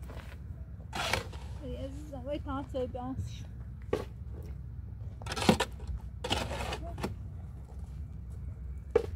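A shovel scrapes and scoops wet mortar in a metal wheelbarrow.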